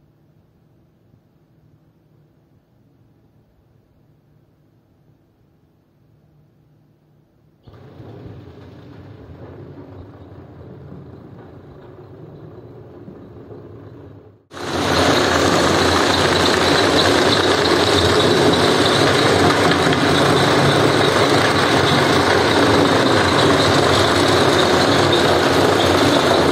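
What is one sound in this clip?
A scrubbing machine whirs and swishes over a wet carpet, growing much louder partway through.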